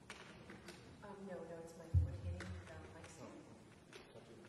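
A piano plays a few notes in an echoing hall.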